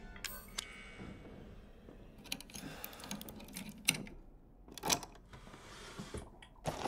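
An electric guitar's strings are scraped and plucked.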